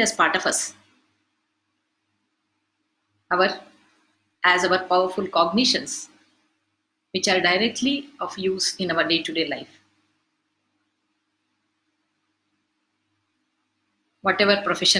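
An elderly woman speaks calmly into a close microphone, with pauses.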